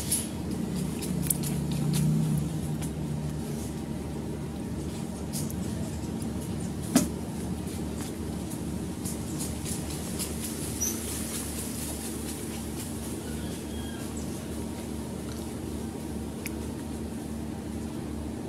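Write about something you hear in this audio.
A baby monkey breathes weakly.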